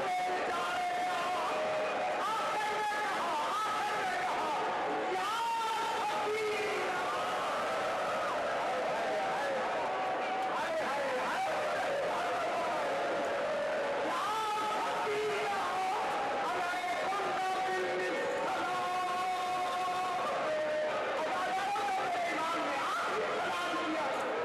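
A man speaks with passion through a loudspeaker in a large echoing hall, his voice rising and falling.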